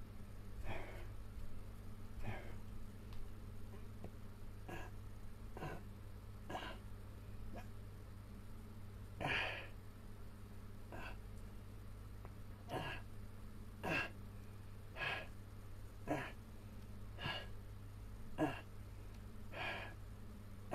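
A man exhales sharply and rhythmically while exercising close by.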